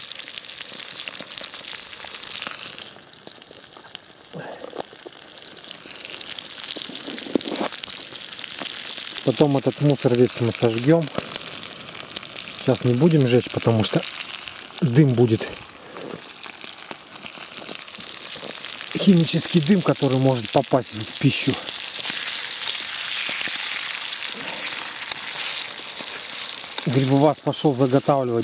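Food sizzles and crackles in a frying pan.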